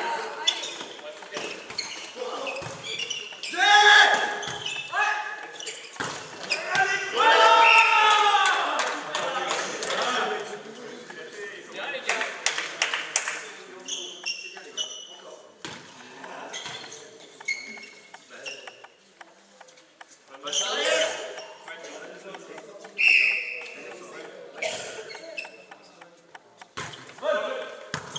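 A volleyball is struck with hard smacks.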